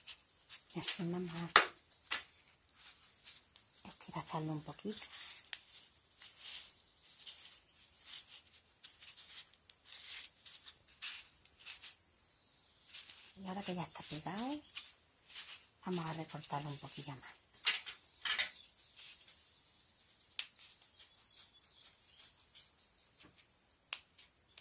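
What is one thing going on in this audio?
Hands rustle and handle soft fabric close by.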